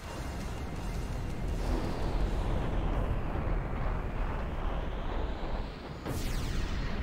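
A huge creature rumbles loudly as it twists through the air.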